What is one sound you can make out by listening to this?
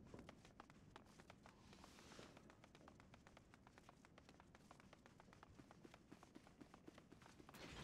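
Footsteps tap quickly and evenly on a hard stone floor.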